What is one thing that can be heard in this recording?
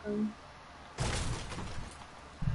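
A pickaxe strikes a wall with a loud crack.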